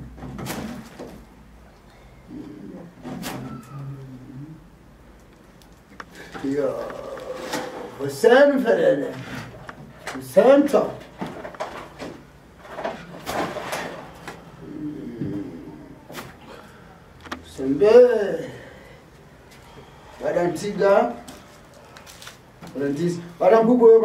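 An elderly man calls out loudly and with fervour, close by.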